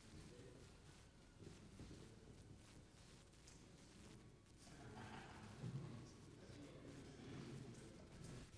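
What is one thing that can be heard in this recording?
Men talk quietly among themselves in a large room, heard from a distance.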